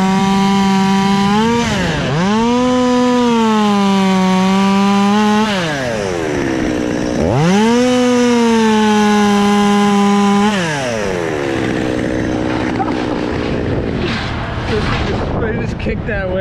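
A chainsaw engine revs up and down close by, then drops to an idle.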